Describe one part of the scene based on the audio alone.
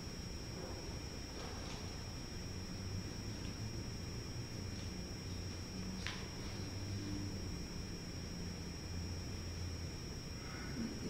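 A man speaks quietly at a distance in a large echoing room.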